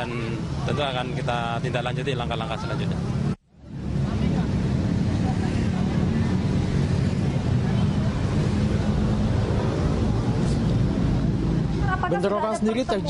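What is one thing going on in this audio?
Traffic rumbles in the background.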